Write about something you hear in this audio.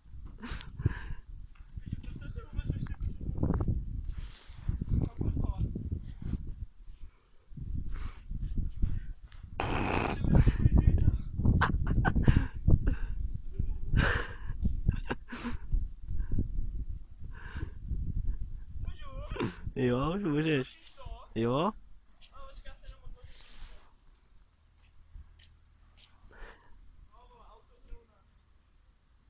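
A young man talks casually outdoors, close by.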